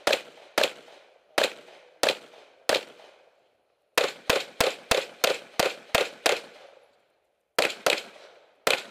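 A pistol fires rapid shots close by, each ringing out outdoors.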